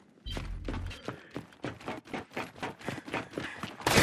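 Heavy armoured footsteps thud on a metal floor.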